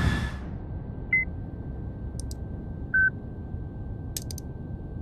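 An aircraft engine drones low and steady.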